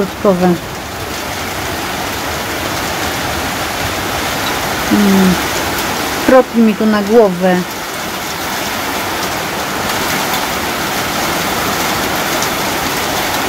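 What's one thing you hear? Heavy rain pours steadily onto leaves outdoors.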